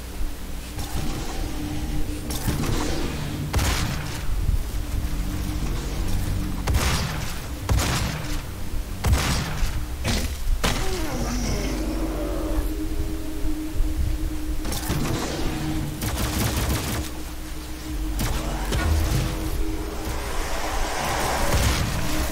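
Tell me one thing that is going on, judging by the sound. Gunshots blast in quick bursts.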